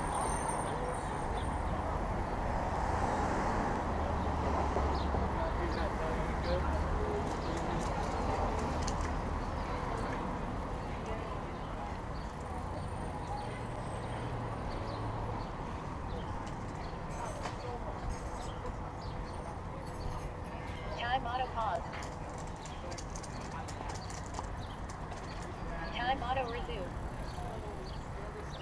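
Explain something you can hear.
City traffic hums in the distance outdoors.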